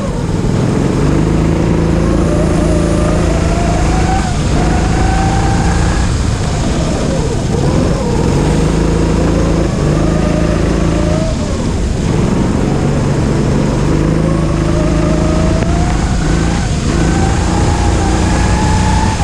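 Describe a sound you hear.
A kart engine revs up and down loudly close by.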